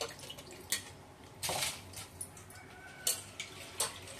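A metal lid clinks against a pot.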